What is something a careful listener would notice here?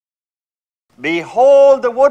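A man chants in a sustained voice.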